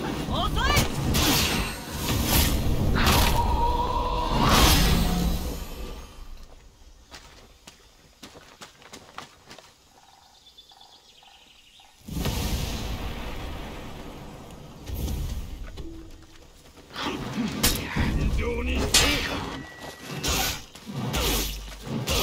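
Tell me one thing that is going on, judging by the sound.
Swords clash and slash with sharp metallic impacts.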